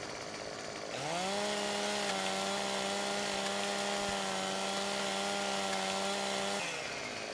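A chainsaw engine runs at a steady high whine.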